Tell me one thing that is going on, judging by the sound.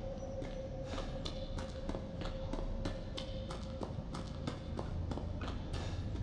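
Footsteps crunch quickly and steadily on snowy ground.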